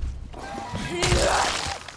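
A blade strikes flesh with a wet thud.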